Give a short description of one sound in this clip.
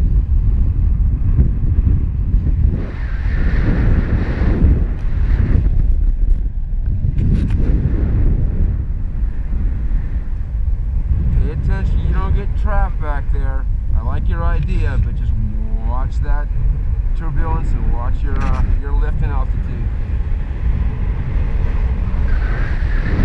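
Strong wind roars and buffets steadily outdoors.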